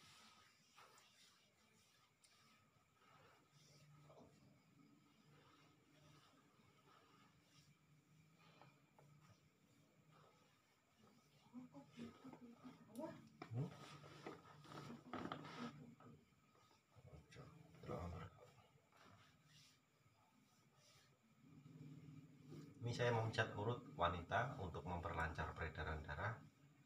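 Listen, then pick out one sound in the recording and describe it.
Hands rub and knead skin with a soft rustle.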